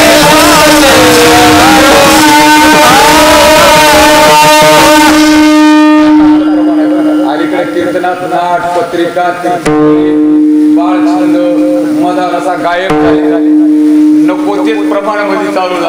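A young man speaks and chants with animation through a loudspeaker microphone.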